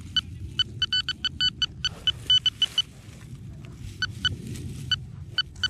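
Dry straw rustles under a gloved hand.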